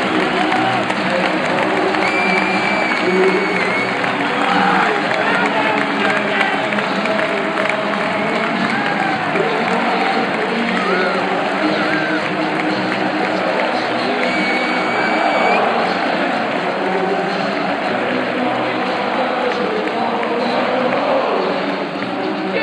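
A large stadium crowd sings and chants loudly, echoing under the stands.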